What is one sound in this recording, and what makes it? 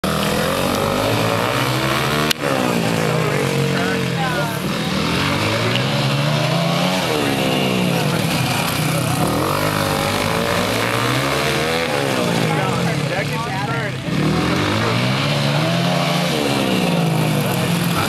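Dirt bike engines rev and whine loudly as they race around outdoors.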